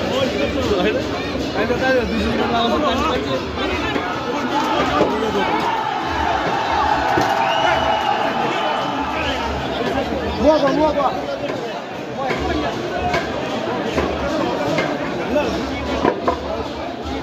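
A large crowd of men and women chatters and calls out loudly outdoors.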